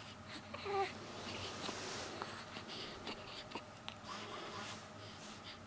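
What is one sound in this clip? A baby coos softly close by.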